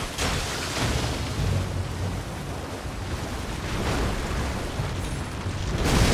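A huge beast roars and growls.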